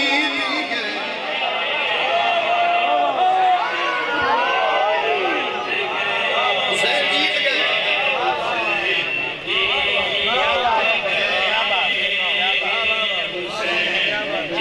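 A crowd of men chants in unison.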